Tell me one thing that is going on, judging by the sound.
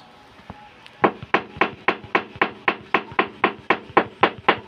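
A floor tile is tapped in fast, steady knocks.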